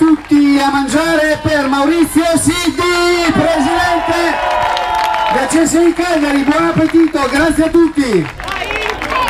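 A man shouts with excitement through a loudspeaker outdoors.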